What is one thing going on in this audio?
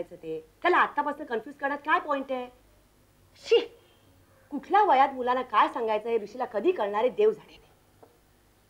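A middle-aged woman speaks urgently, close by.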